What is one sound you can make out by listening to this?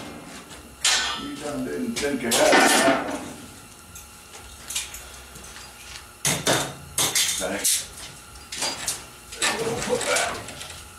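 Long metal bars clank and rattle against each other nearby.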